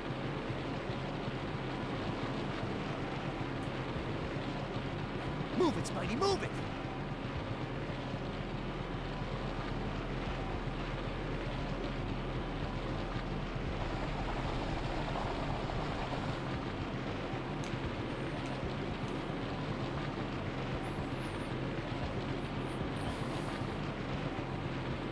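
Water rushes steadily through a tunnel.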